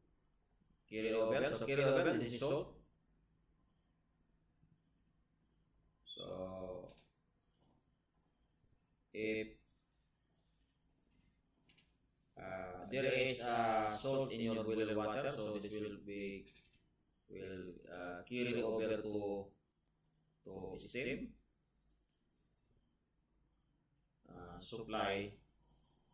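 A man lectures calmly into a microphone, in short bursts with pauses.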